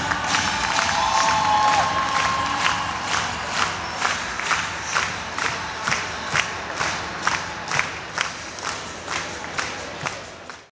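A large crowd murmurs.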